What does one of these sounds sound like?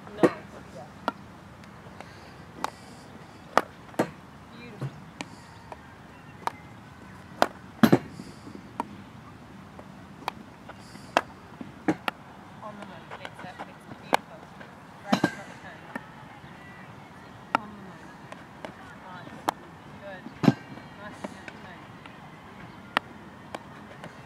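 A hockey stick strikes a ball with sharp clacks, again and again.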